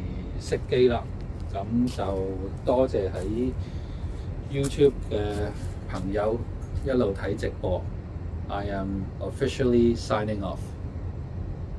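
A middle-aged man speaks calmly into a microphone close by.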